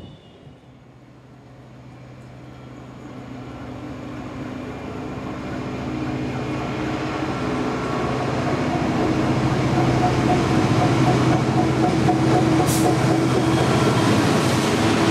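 A diesel locomotive engine rumbles as it approaches and grows steadily louder.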